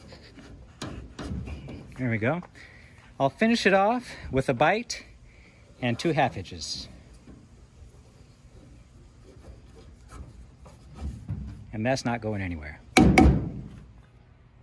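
A rope rustles and rubs against wood.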